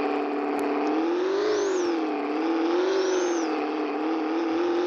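A car engine revs up and drops back twice.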